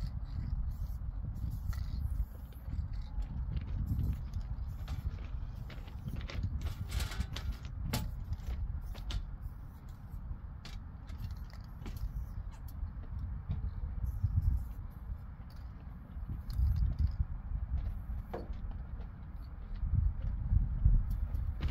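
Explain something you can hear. An aerosol spray can hisses in short bursts.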